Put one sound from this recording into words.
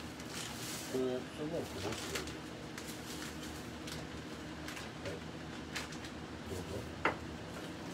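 Small items clink and tap on a counter.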